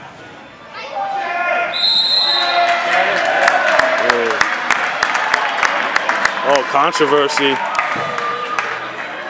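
Children cheer and shout excitedly.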